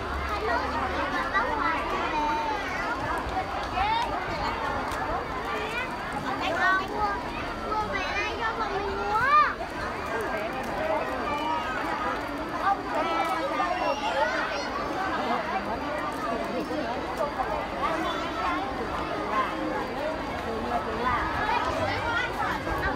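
A large crowd of children chatters outdoors.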